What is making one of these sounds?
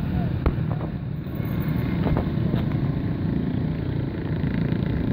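A motorcycle engine putters close by.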